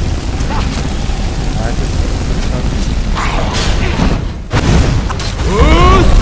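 A fire spell roars and crackles.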